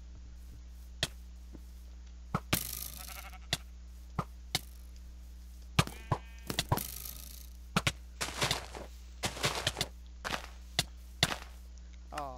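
Sword blows land with sharp thuds.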